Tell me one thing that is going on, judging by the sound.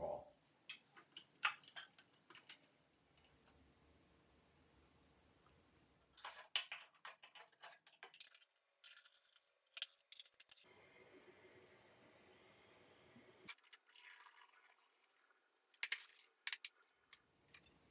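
Glass jars and bottles clink and knock.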